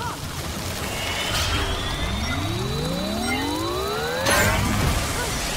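A machine whirs and rises in pitch.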